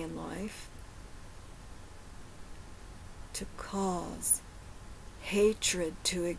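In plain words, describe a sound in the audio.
A woman speaks calmly and close to a microphone, in short bursts with pauses.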